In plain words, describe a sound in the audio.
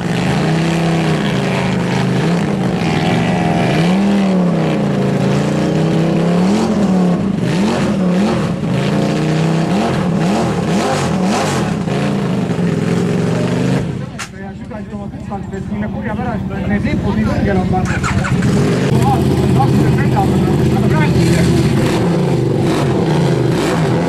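A dirt bike engine revs hard and whines up and down.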